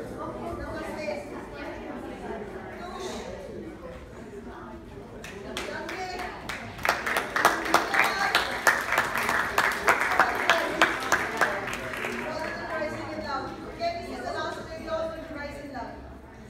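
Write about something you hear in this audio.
A woman speaks loudly to a group in a large room.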